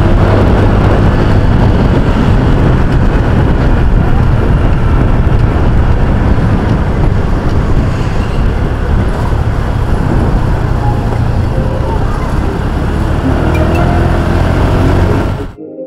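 A motor scooter engine hums steadily while riding.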